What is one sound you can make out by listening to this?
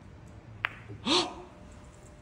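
A young man shouts with joy close by.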